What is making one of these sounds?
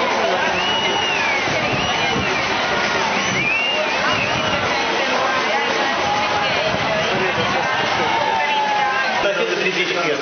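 Men talk and cheer cheerfully nearby, outdoors.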